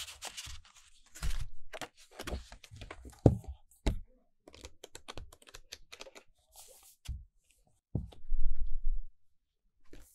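Hands tap and handle a book, making soft thuds.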